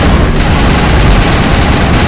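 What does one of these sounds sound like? A loud electric blast crackles and booms.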